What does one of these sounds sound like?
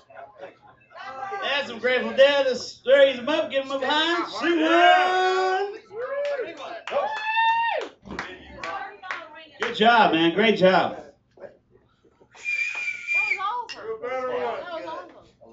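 A man shouts and sings with animation into a microphone.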